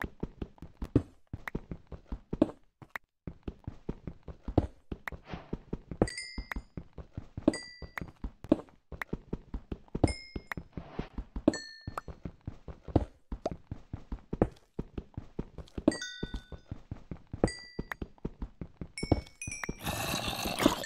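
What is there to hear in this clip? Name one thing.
A pickaxe taps rapidly and repeatedly against stone.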